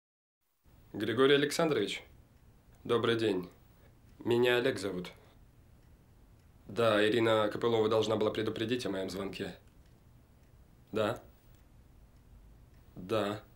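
A young man talks calmly into a phone, close by.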